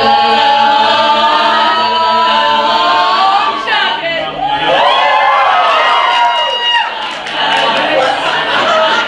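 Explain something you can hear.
A group of young people sings together loudly in an echoing space.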